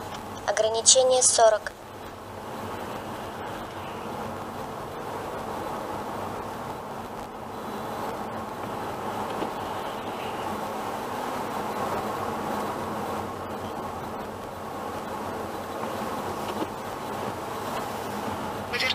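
A car drives along a road with a steady hum of tyres and engine heard from inside.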